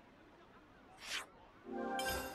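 A short chime sounds as a menu closes.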